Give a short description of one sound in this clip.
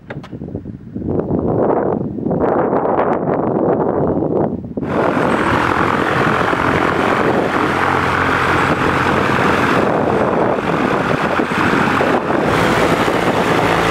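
A small propeller plane's engine roars steadily close by.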